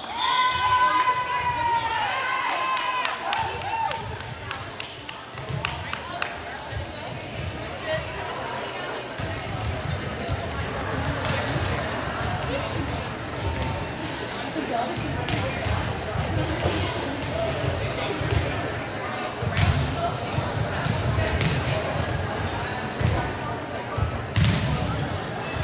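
A crowd chatters and murmurs in a large echoing gym.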